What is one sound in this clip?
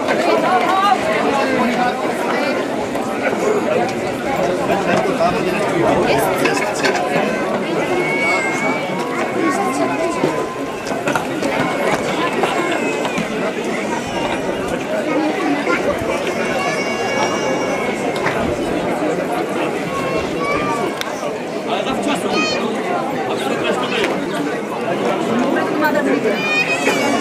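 A large outdoor crowd chatters steadily.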